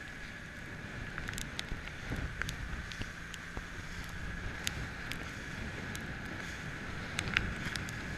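Waves slosh and splash against a boat's hull.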